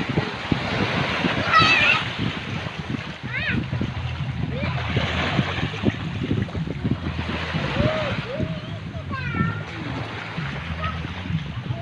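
A person wades through shallow water, splashing.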